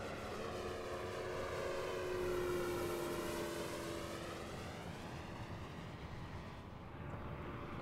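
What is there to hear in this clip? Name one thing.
A propeller plane's engine roars overhead, rising to a peak as it passes and then fading into the distance.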